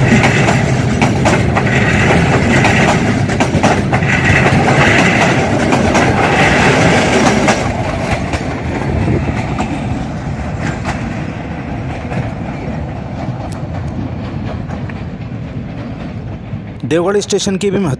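A train rumbles and clatters past close by on the tracks, then fades into the distance.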